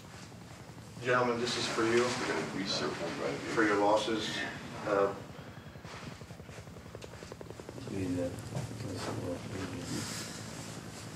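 A man answers in a low voice nearby.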